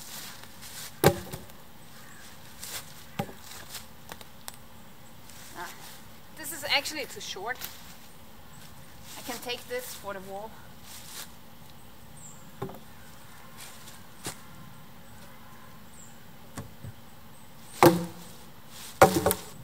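A log thuds and knocks against other logs.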